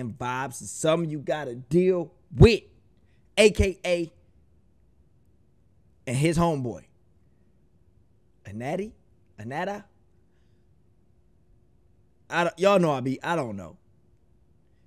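A young man sings loudly into a close microphone in short bursts, with pauses between phrases.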